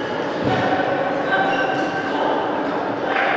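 A ping-pong ball clicks sharply back and forth off paddles and a table.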